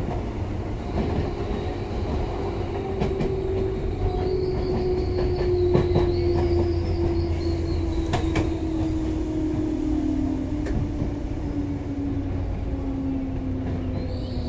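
A train's electric motor whines and slowly falls in pitch.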